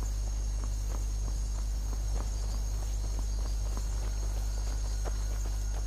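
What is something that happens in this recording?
Footsteps crunch on stony ground at a steady walking pace.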